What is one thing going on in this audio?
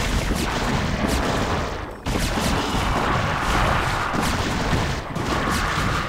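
Rapid gunfire and explosions crackle in a busy battle.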